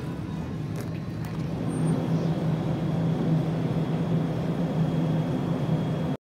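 A freezer hums steadily close by.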